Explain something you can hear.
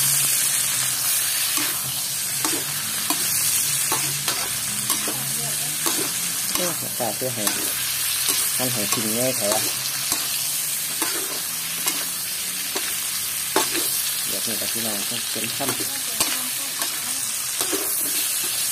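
Meat sizzles steadily in hot fat.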